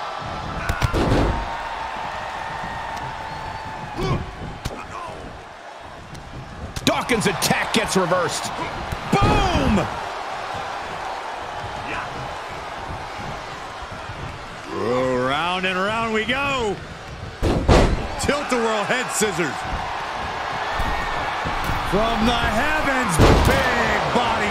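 Heavy thuds ring out as bodies slam onto a wrestling ring mat.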